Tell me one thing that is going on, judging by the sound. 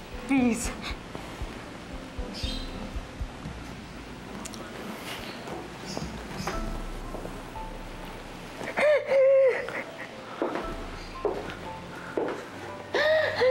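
A young woman sobs and cries loudly nearby.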